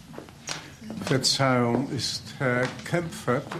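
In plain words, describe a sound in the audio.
A man speaks loudly and with feeling nearby.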